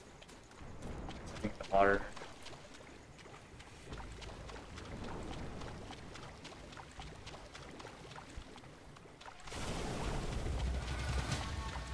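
Water splashes as someone wades through it.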